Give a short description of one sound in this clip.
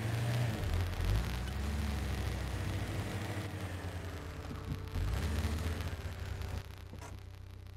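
An off-road vehicle engine revs and rumbles over rough rocky ground.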